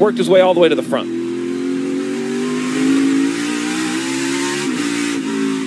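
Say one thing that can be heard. A race car engine roars steadily at high revs.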